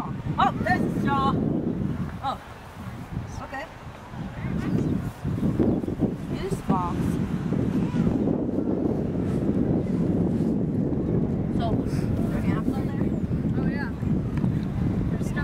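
A young boy talks casually nearby.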